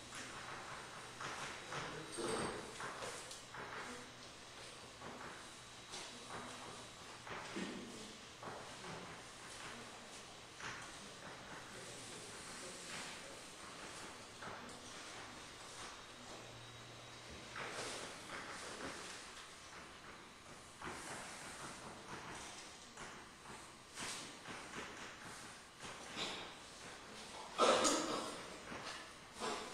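A man lectures to an audience in a large echoing hall, heard from far off.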